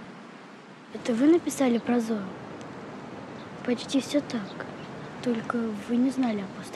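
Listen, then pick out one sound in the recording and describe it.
A young girl speaks calmly, close by.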